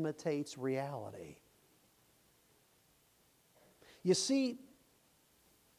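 An elderly man speaks with emphasis through a microphone.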